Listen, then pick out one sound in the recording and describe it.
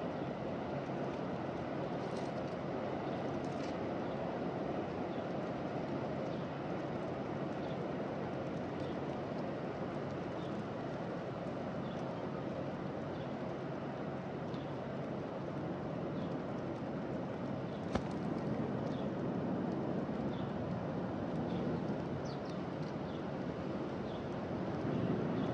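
Doves peck at seed on hard ground close by.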